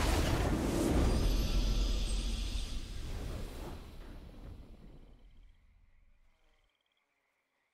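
A triumphant fanfare swells and then slowly fades away.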